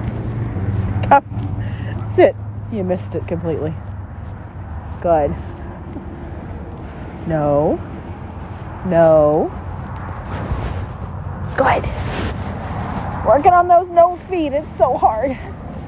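A man calls out loudly from a distance outdoors.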